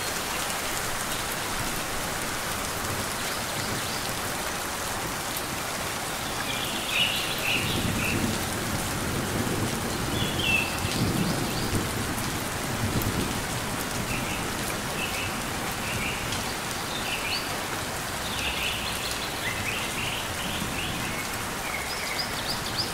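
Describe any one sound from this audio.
Rain falls steadily with a soft, even hiss.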